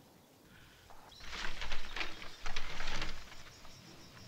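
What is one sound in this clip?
Paper rustles and crackles close by.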